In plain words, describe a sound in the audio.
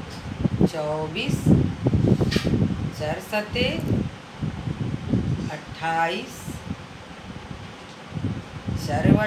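A woman recites aloud in a lively, sing-song voice close by.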